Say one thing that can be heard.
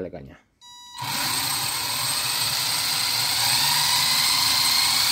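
An electric motor whirs steadily at high speed.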